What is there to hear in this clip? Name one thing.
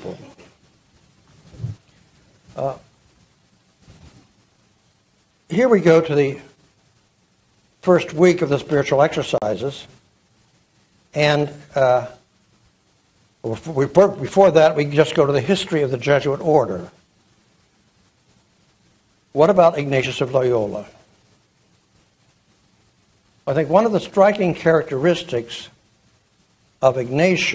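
An elderly man speaks calmly through a microphone, with pauses between phrases.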